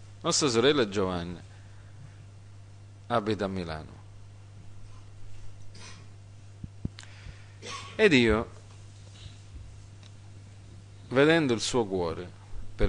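A middle-aged man speaks slowly through a microphone in bursts, with long pauses, in an echoing room.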